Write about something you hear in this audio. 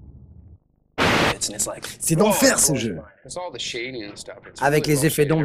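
A young man talks excitedly, close by.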